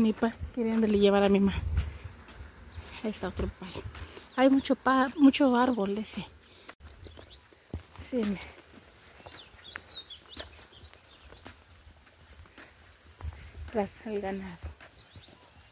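A young woman speaks calmly, close to the microphone.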